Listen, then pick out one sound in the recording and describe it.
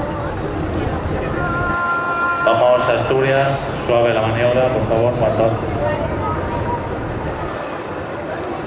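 Water washes against a ship's hull.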